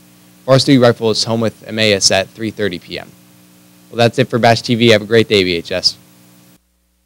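A young man speaks calmly into a microphone close by.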